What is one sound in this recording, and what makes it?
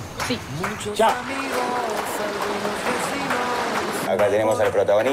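Children splash in water outdoors.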